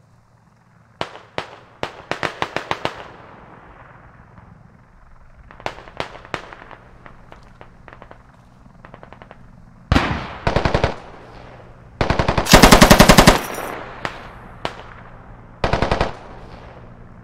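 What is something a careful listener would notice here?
A rifle fires in short rapid bursts of shots.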